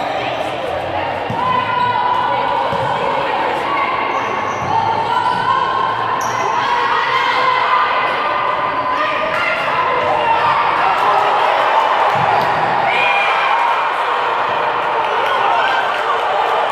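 Young women shout and call out to each other across a large echoing hall.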